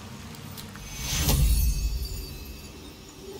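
A magical blast booms and crackles.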